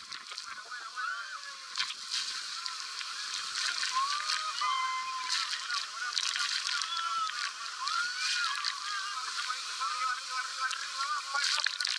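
A group of men and women shout and scream with excitement.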